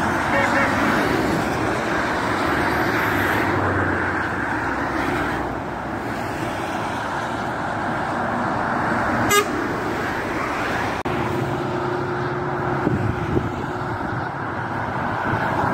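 Steady motorway traffic roars past close by.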